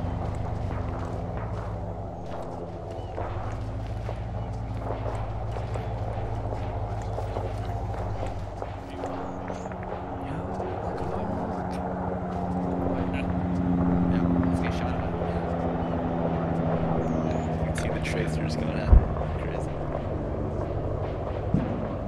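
An aircraft engine drones overhead.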